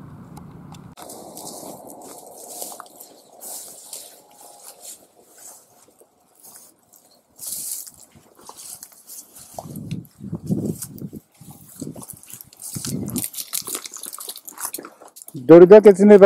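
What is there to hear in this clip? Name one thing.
Tall grass rustles as people pull plants by hand.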